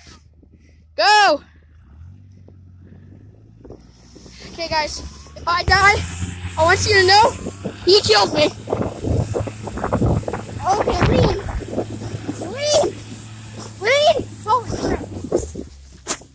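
A sled scrapes and hisses over snow.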